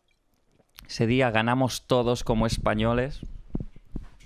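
A young man speaks calmly, close to a microphone.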